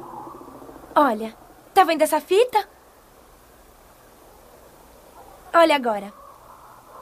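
A young girl speaks in a high, excited voice, close by.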